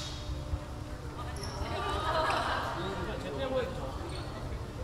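Young women talk and call out in a large echoing hall.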